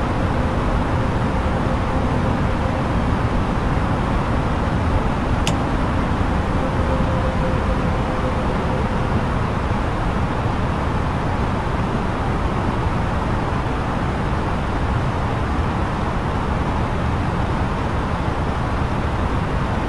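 Jet engines and rushing air roar steadily and low throughout.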